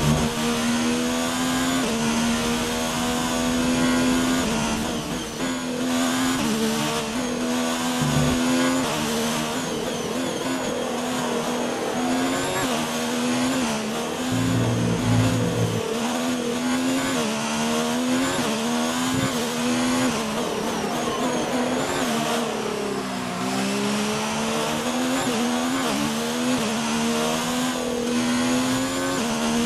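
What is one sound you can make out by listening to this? A racing car engine screams at high revs, rising and falling with gear changes.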